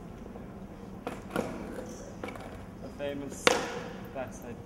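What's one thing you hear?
A skateboard clatters on concrete.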